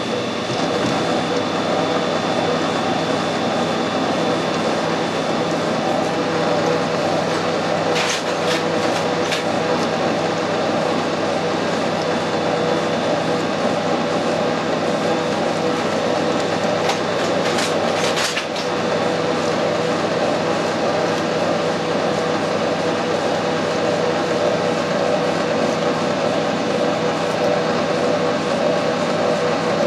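A metal lathe hums steadily while running.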